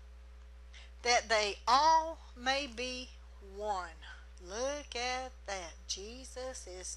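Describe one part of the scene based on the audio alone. A middle-aged woman reads out steadily into a microphone.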